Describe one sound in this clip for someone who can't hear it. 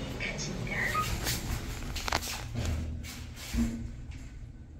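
Elevator doors slide shut with a rumble and a thud.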